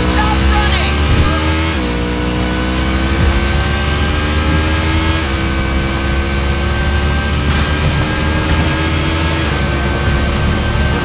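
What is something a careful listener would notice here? A motorcycle engine roars steadily at speed, its pitch rising and dropping with gear shifts.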